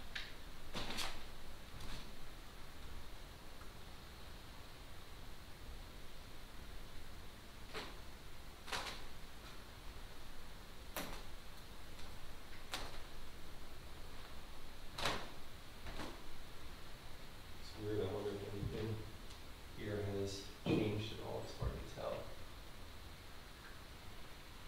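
Footsteps crunch over scattered debris in a quiet room.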